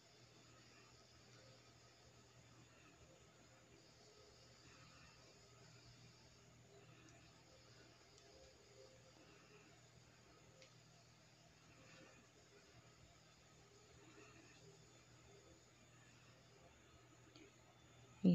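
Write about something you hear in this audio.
A crochet hook softly rustles and pulls through yarn.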